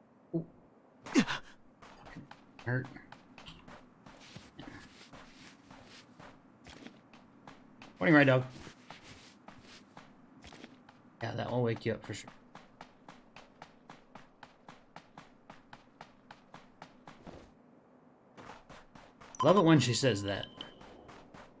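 A young man talks casually into a close microphone in short bursts.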